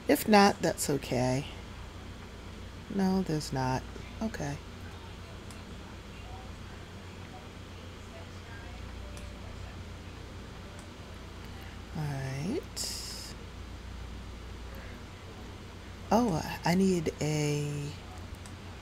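A young woman talks casually into a close microphone, in short bursts with pauses.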